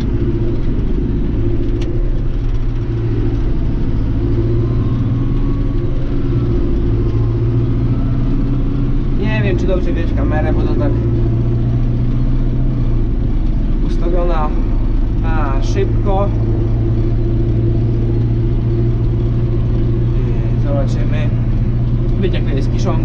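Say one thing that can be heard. A tractor engine drones steadily up close.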